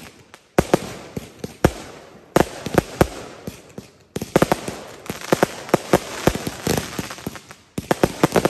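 Fireworks hiss and crackle nearby.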